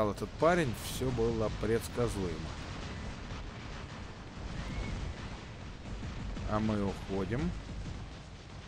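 A man speaks casually and close into a microphone.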